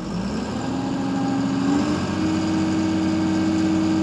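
Hydraulics whine as a truck's dump bed tips up.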